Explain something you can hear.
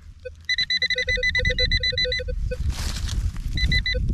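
A metal probe crunches and scrapes through loose soil.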